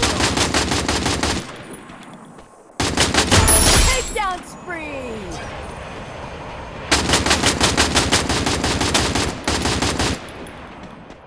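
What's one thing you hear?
Automatic gunfire rattles in loud rapid bursts.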